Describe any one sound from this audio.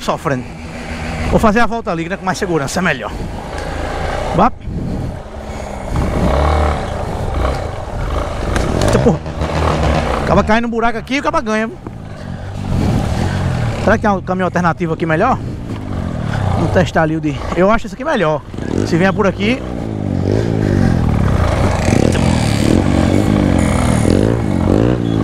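A single-cylinder trail motorcycle engine runs and revs on a dirt trail.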